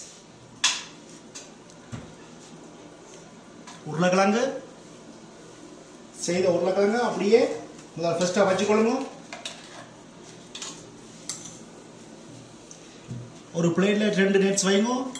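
A metal spoon taps and scrapes against a ceramic plate.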